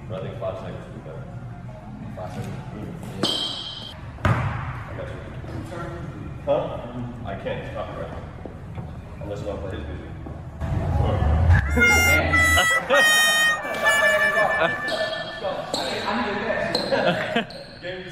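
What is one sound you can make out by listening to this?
Young men talk in a large echoing gym.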